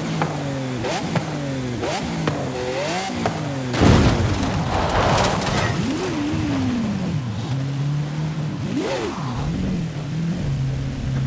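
A sports car engine roars and rises in pitch through quick gear shifts.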